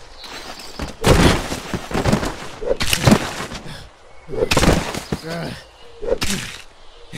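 An axe strikes a body with heavy, wet thuds, again and again.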